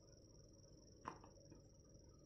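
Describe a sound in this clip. A phone is set down on a hard table with a light knock.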